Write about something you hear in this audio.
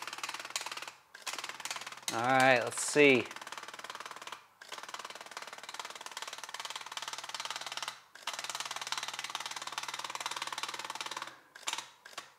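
A small motor whirs steadily as a film strip feeds through a holder.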